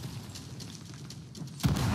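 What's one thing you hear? A cannon blast booms in the distance.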